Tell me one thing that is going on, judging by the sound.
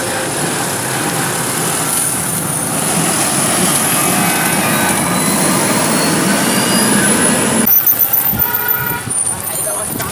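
A motorcycle engine passes close by.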